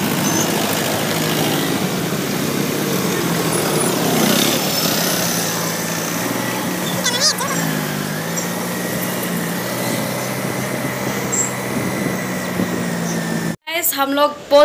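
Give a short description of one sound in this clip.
Motorcycle engines hum steadily on a road.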